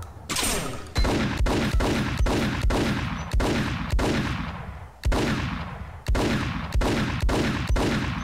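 A pistol fires rapid shots that echo.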